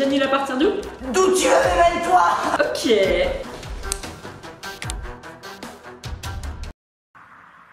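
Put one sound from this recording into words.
A teenage girl laughs and talks loudly, close by.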